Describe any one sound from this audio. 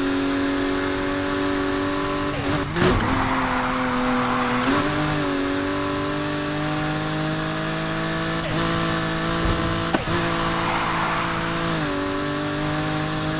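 A car engine roars at high revs, shifting gears as it speeds along.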